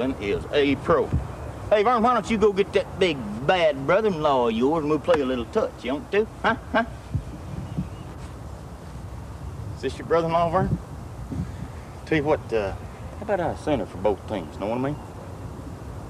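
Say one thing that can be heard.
A middle-aged man talks loudly and animatedly close by.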